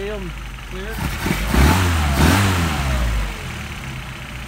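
An engine revs up sharply and quickly drops back to idle.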